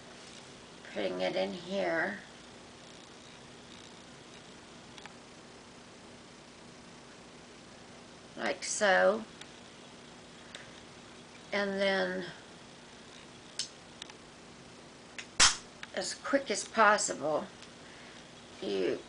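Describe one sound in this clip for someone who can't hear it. A middle-aged woman talks calmly in short phrases close by.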